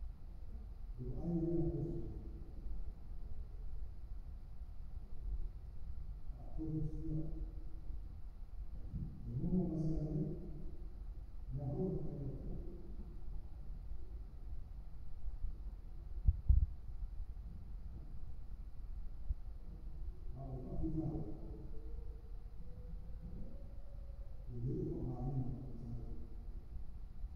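A man speaks slowly through a microphone and loudspeakers in a large echoing hall, with long pauses.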